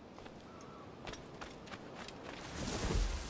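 Leaves rustle as someone pushes through dense bushes.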